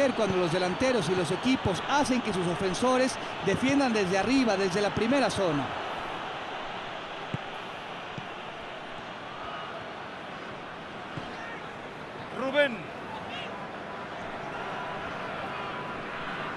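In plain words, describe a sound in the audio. A stadium crowd murmurs in a large open stadium.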